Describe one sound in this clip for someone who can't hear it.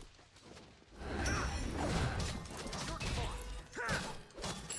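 A magical blast bursts with a crackling whoosh.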